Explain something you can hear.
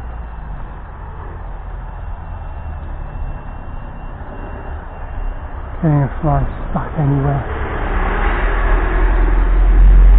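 A small stream trickles gently nearby.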